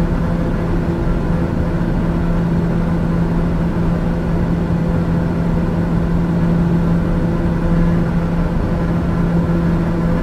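Jet engines hum steadily in a low, even drone.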